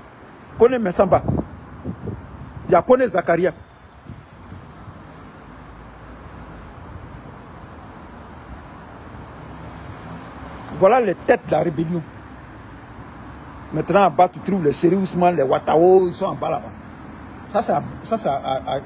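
A middle-aged man talks calmly close to a phone microphone, in short bursts with pauses.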